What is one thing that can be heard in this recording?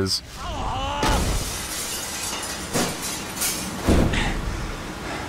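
Glass shatters loudly as a window breaks.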